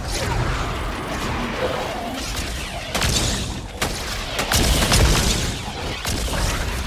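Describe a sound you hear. Quick footsteps thud as a game character runs across the ground.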